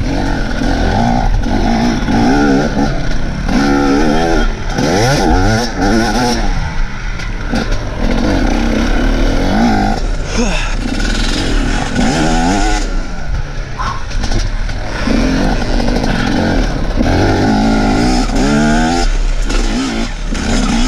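A dirt bike engine revs hard and drops again and again, very close.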